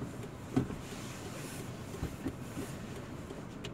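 Someone shuffles and rustles about on a car's back seat.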